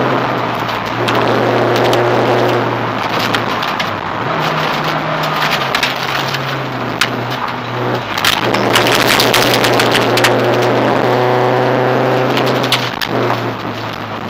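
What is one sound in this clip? Gravel rattles and pings against the underside of a car.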